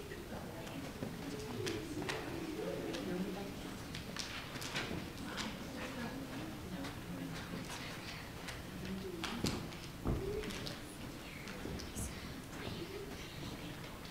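Children murmur and chatter quietly.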